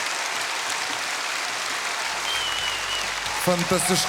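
A young man claps his hands.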